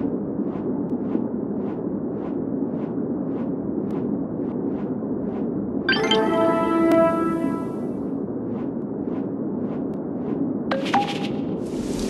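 Wings flap in a steady rhythm.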